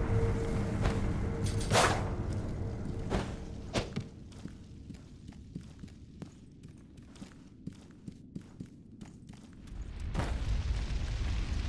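Footsteps patter quickly across wooden boards.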